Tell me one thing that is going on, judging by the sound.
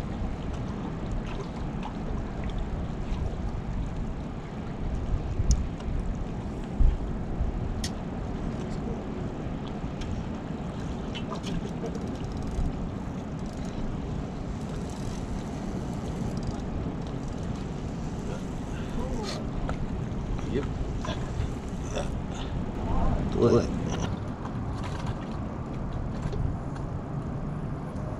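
Wind blows steadily across an open shore.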